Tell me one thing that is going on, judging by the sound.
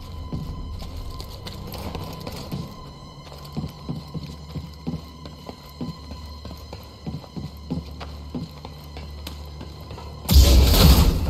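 Footsteps clank on metal grating.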